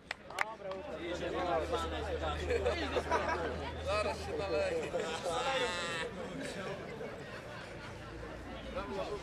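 Men clap their hands.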